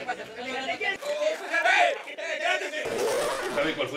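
A young man shouts excitedly.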